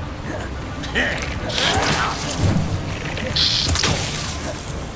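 Magic spells crackle and zap in quick bursts.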